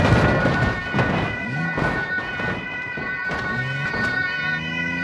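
A car crashes into a wall with loud bangs and crunching.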